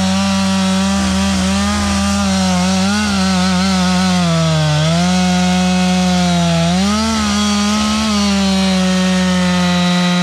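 A chainsaw roars loudly and steadily as it cuts into a tree trunk, its engine pitch dipping and rising under load.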